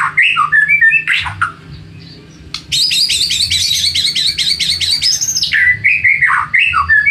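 A songbird sings loud, varied whistles and rapid trills close by.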